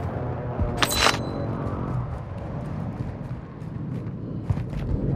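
A gun rattles and clicks as it is handled.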